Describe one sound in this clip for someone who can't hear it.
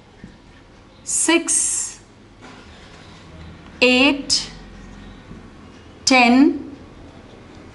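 A young woman counts aloud calmly, in short clear words with pauses between them.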